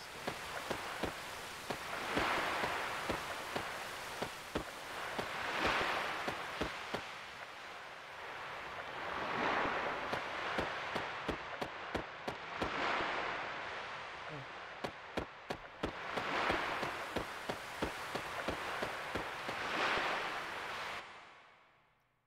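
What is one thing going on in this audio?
Magical energy whooshes in slow, swelling waves.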